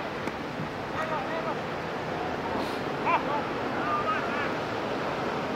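Young men shout to each other in the distance.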